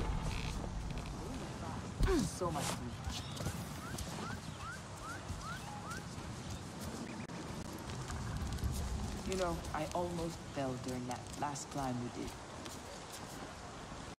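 Footsteps run quickly across grass and earth.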